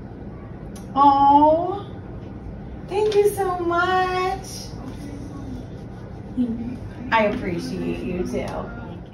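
A woman speaks excitedly nearby.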